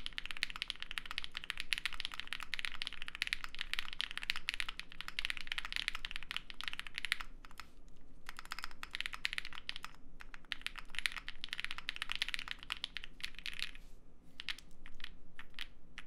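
Keys clack rapidly on a mechanical keyboard, close by.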